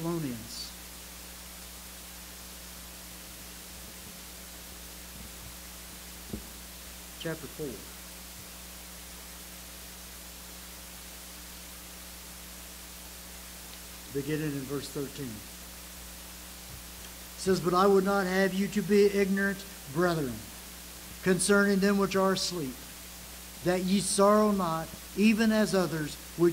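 An elderly man speaks slowly and earnestly into a microphone, with long pauses.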